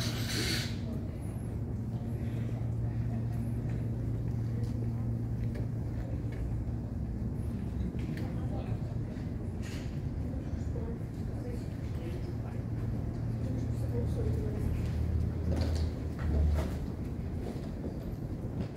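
A steady low hum of ventilation fills a large echoing hall.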